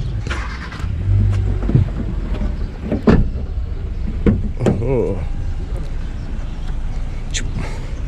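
A car door opens and thumps shut.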